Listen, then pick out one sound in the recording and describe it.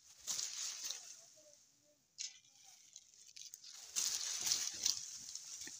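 Leaves rustle in gusts of wind.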